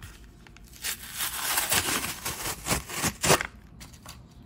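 Paper tears open.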